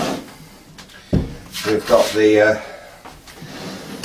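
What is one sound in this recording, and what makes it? A heavy wooden box thumps down onto a table.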